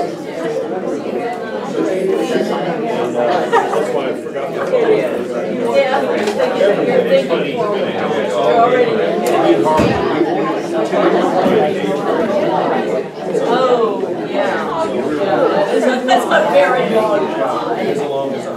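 Many adult men and women chatter at once in a room.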